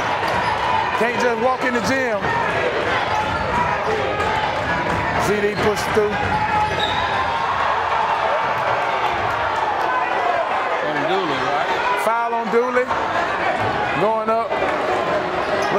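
Spectators shout and cheer loudly.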